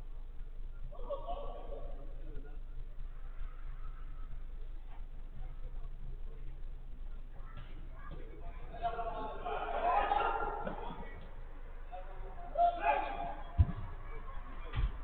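Men shout and call out to each other, heard from a distance in an echoing hall.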